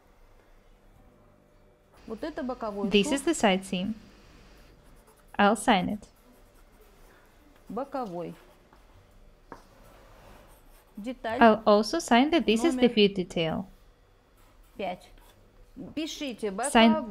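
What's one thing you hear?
A pencil scratches across paper.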